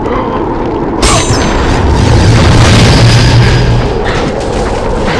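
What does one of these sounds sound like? A magical burst swells with a deep rumble.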